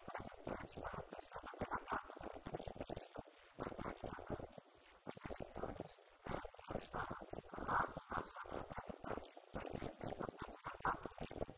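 A man speaks steadily into a microphone, heard through loudspeakers in an echoing room.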